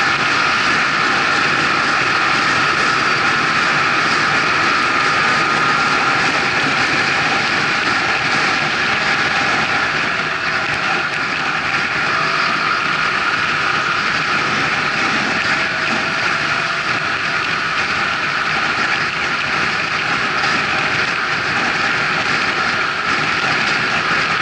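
Wind rushes loudly past the car.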